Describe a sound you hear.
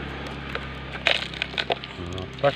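Gravel pours into a plastic toy truck's bed.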